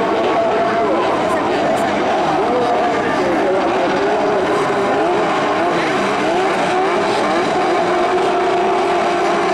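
Many small race car engines roar and whine together, revving up and down.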